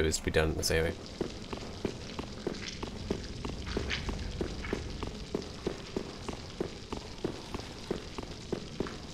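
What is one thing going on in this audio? Footsteps tap on stone in an even rhythm.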